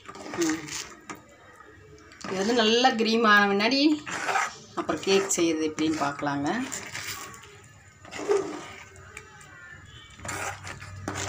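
A spoon scrapes and stirs thick batter in a metal pot.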